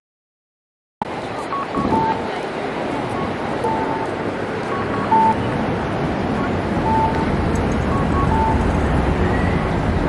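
Footsteps pass along a busy street outdoors.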